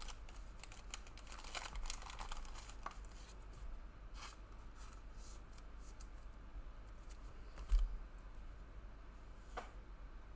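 Trading cards slide and rustle against each other in a person's hands.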